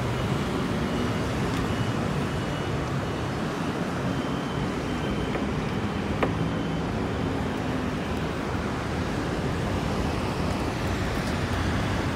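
Wind blows steadily and roughly high outdoors.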